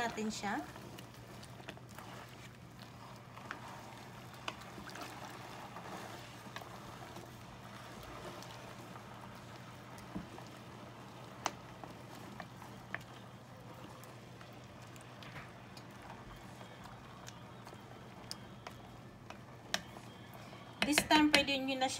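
A wooden spoon stirs chunks of meat in a steel pot of stew.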